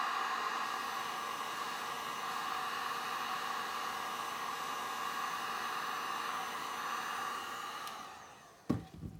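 A heat gun blows with a steady whirring roar.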